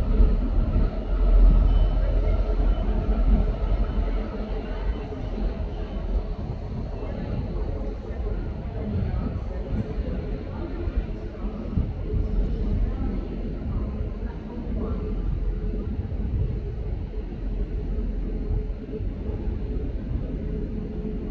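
Locomotive wheels rumble and clatter over rail points.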